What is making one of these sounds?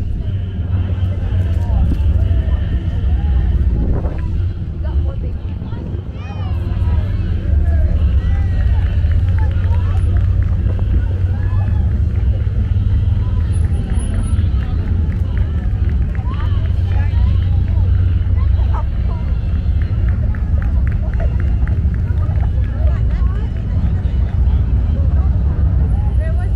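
Jeep engines rumble as they roll slowly past, close by.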